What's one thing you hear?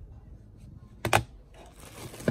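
A computer mouse knocks down onto a hard surface.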